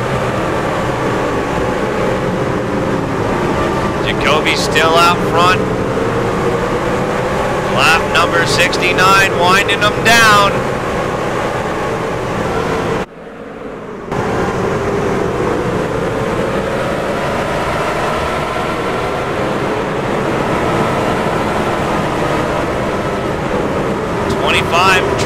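Race car engines roar steadily as they speed around the track.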